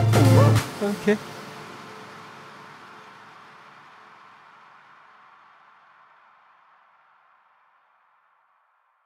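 A man says a short word loudly, followed by a long echo that slowly fades.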